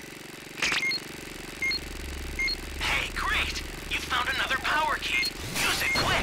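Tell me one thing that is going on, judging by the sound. A handheld radar beeps repeatedly in short high blips.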